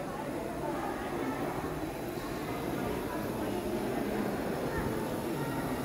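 A model train rumbles along its track.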